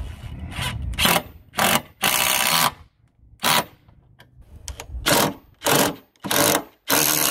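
A cordless impact driver hammers in short, loud bursts.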